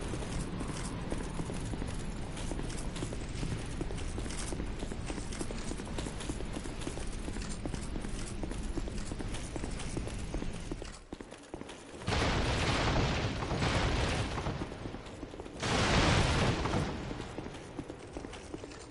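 Armored footsteps crunch on snow and stone.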